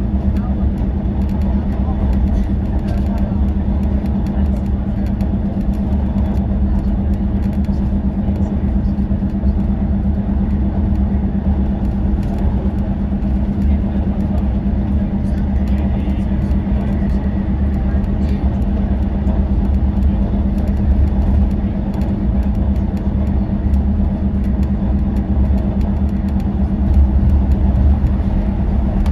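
Tyres roar steadily on the road surface.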